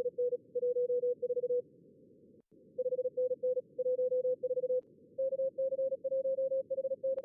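Morse code beeps out quickly over a radio, with short pauses.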